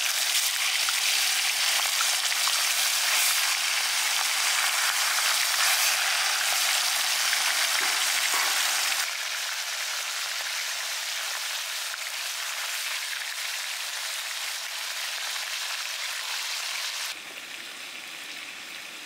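Fish sizzle loudly as they fry in hot oil.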